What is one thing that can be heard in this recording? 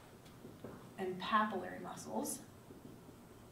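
A young woman speaks briefly.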